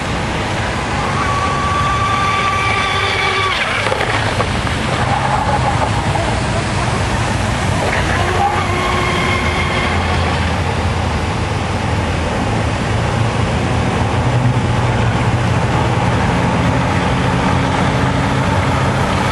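A fountain splashes steadily.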